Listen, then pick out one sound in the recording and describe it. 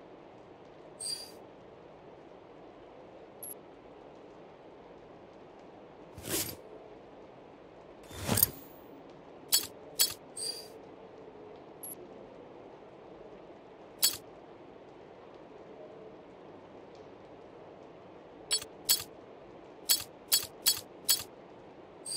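Short menu clicks and soft chimes sound now and then.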